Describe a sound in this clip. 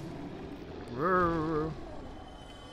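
A young man exclaims briefly into a microphone, close up.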